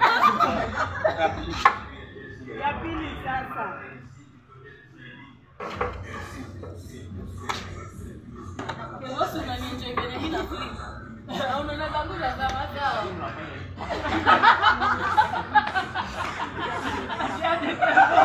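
A young woman talks and laughs with animation nearby.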